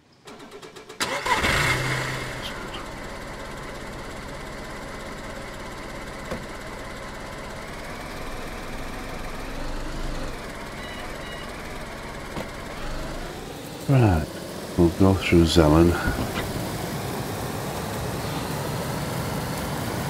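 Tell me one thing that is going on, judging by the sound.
A car engine hums steadily as the car drives over rough ground.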